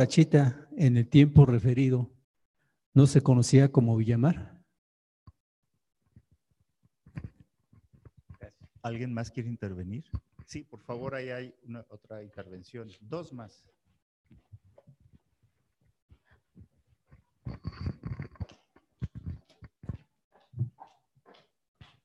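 A man speaks through a microphone in a large echoing hall, pausing between phrases.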